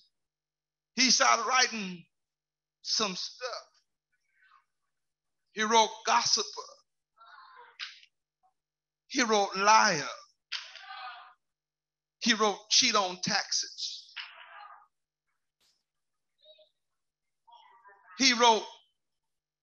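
A man preaches through a microphone in short, forceful phrases with pauses between them.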